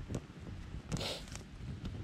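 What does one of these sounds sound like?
Twigs rustle as a hand feeds the fire.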